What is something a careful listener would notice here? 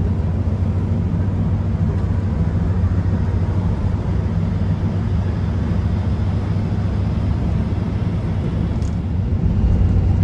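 Tyres roar on a paved road.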